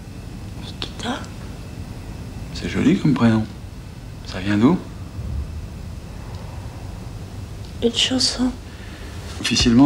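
A young woman sobs softly close by.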